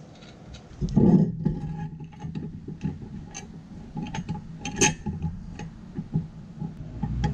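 A metal winch ratchet clicks as it is turned.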